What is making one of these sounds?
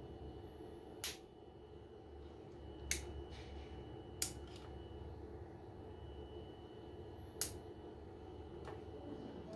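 A relay clicks sharply several times.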